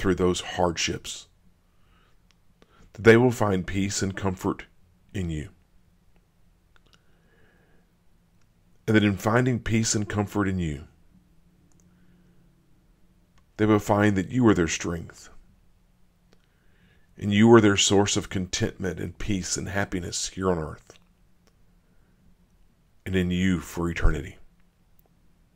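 A middle-aged man speaks calmly and slowly into a close microphone, with long pauses.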